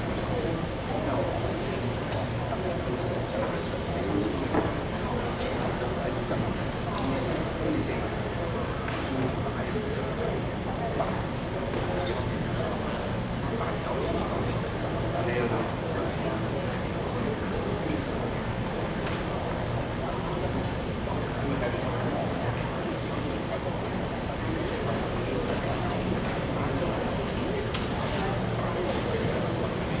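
Many people chatter at once in a large echoing hall.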